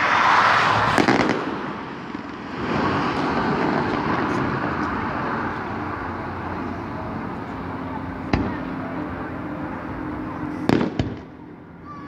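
Fireworks bang loudly in the distance.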